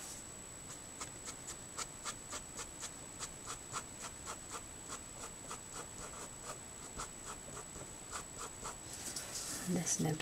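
A marker pen squeaks and scratches across paper in short, quick strokes.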